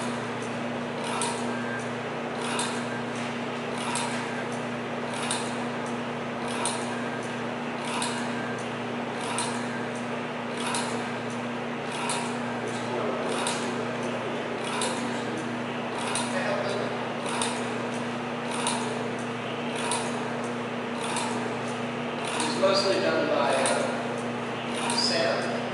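A machine clicks in a steady, even rhythm.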